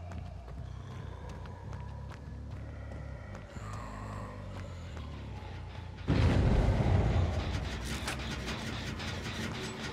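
Heavy footsteps tread slowly through grass and dirt.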